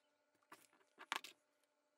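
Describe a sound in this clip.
A small object taps down on a hard tabletop.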